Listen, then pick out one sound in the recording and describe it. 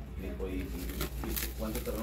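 Plastic wrapping rustles and crinkles as a package is handled.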